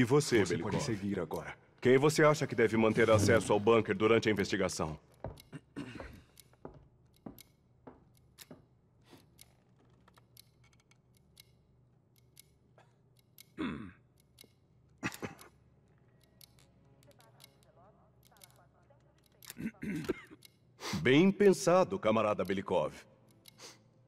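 An elderly man speaks calmly and gravely.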